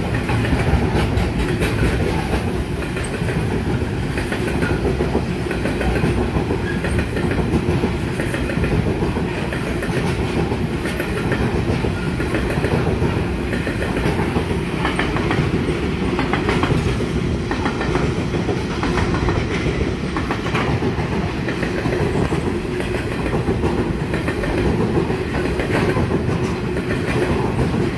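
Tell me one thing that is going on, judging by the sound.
Steel wheels clatter and click over rail joints.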